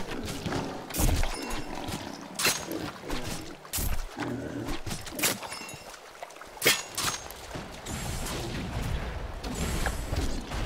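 Magic spells zap and crackle in short bursts.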